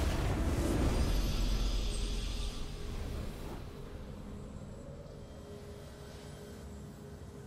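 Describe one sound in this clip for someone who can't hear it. Triumphant game music swells and then slowly fades.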